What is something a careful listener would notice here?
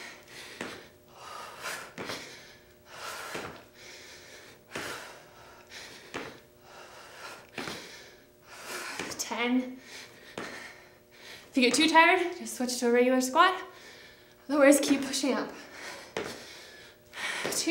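Sneakers thump on the floor with each jump.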